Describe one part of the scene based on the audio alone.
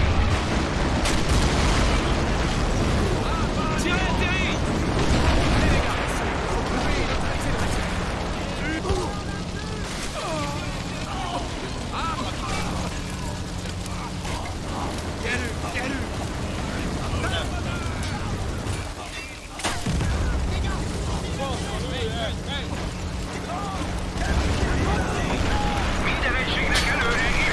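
Explosions boom one after another.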